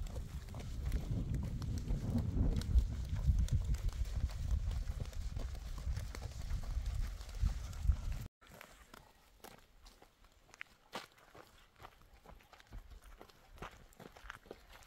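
Footsteps scuff on a paved road.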